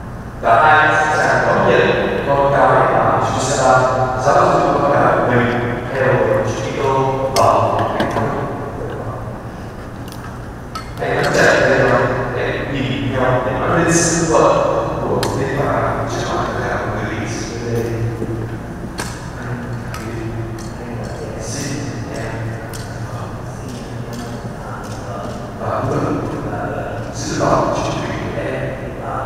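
A young man speaks slowly and solemnly into a microphone, echoing through a large hall.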